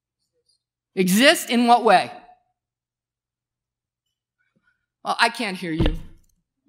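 A middle-aged woman speaks with animation into a microphone, with pauses between phrases.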